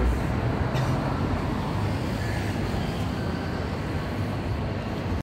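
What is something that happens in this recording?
City street noise hums steadily outdoors.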